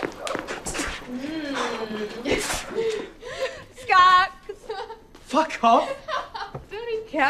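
Young women cheer and shout excitedly close by.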